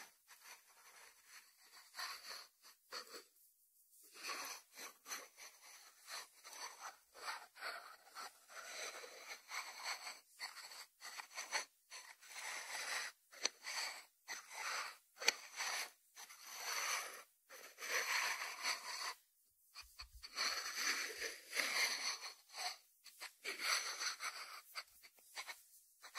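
Fingertips tap and rub on a ceramic lid.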